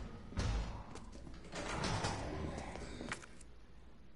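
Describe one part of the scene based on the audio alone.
Zombies groan and moan nearby.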